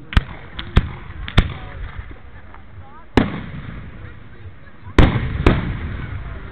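Fireworks bang loudly outdoors.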